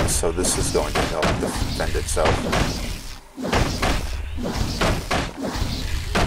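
Weapons clash and magic crackles in a fight.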